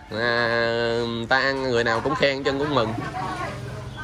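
An elderly man talks loudly close by, drawing out his words.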